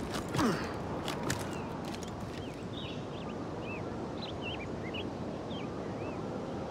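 Leaves and branches rustle as someone pushes through dense bushes.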